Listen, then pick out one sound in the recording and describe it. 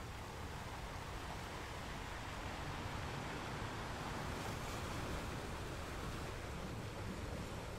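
Surf washes and hisses over a rocky shore.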